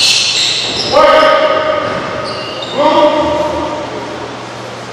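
Young players shout to each other on the court.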